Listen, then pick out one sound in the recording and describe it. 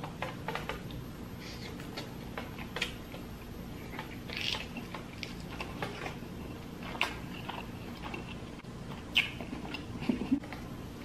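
A woman chews and smacks her lips loudly close to a microphone.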